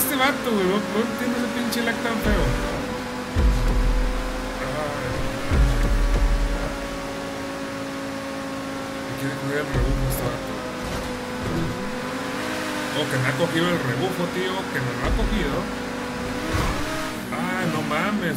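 A car engine roars steadily at high revs.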